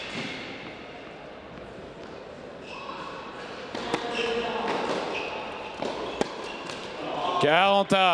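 A tennis ball bounces on a clay court.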